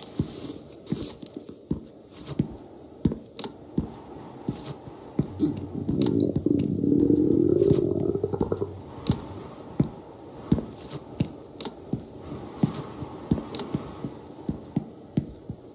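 Soft clicks sound as items are moved between slots.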